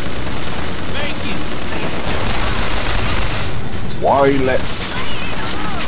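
A gun fires rapid shots.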